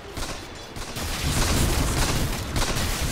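Fighting game sounds clash with hits and spell blasts.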